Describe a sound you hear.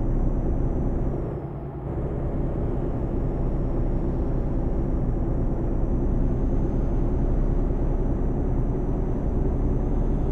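A truck engine rumbles steadily while driving at speed.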